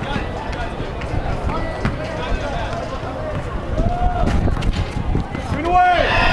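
Many people chatter and call out outdoors.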